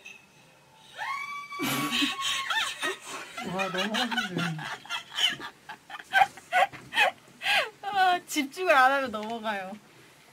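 Young women speak excitedly and laugh nearby.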